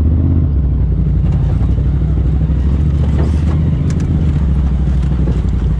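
Tyres grind and crunch over rocks.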